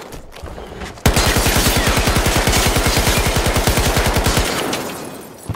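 A gun fires in rapid bursts, loud and close.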